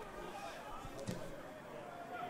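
A football is kicked hard with a thud.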